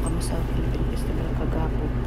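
A middle-aged woman talks softly close by.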